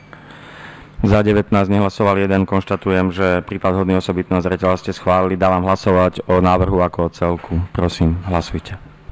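A middle-aged man speaks steadily into a microphone in an echoing hall.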